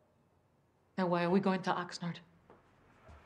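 A middle-aged woman speaks quietly and urgently at close range.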